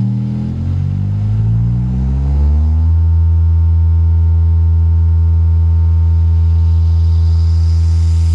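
A subwoofer booms with a loud, deep tone that rises in pitch and then holds steady.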